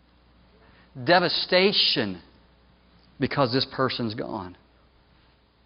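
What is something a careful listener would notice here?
A middle-aged man speaks calmly into a microphone in a large room.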